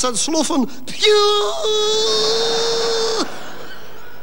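A man sings a long, held note through a microphone.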